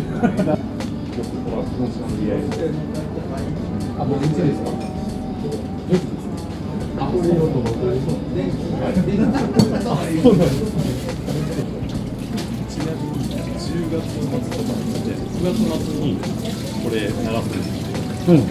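Several people chatter in a busy room.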